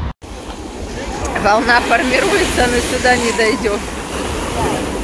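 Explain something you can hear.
Distant voices call out over the surf.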